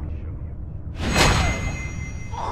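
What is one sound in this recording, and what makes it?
A blade stabs with a sharp, loud thrust.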